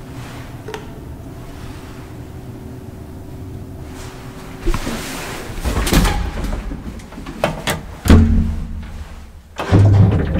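An elevator button clicks as it is pressed.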